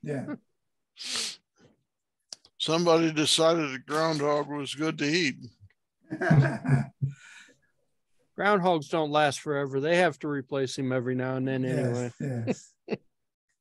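Several men talk and laugh over an online call.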